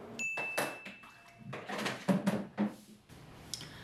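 Water pours from a large jug.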